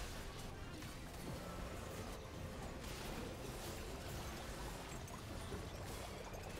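Game battle effects clash and burst with magical whooshes and hits.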